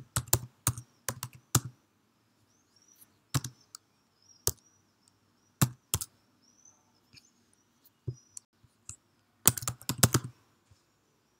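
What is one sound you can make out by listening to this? Keys clack on a computer keyboard in short bursts.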